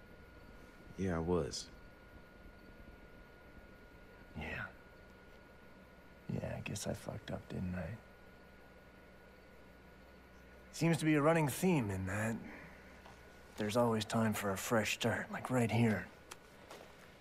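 A man speaks calmly and close, with pauses.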